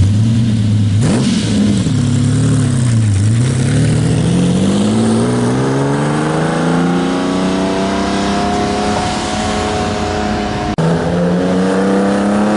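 A sports car engine roars as the car pulls away and accelerates, its pitch climbing.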